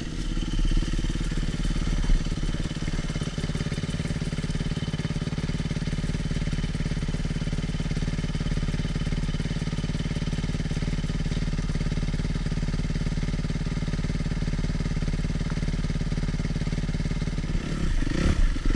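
A dirt bike engine idles with a steady, low rumble close by.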